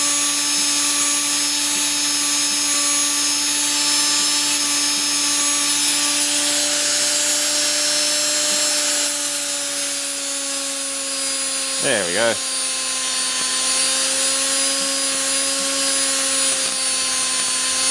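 An electric arc sputters and buzzes.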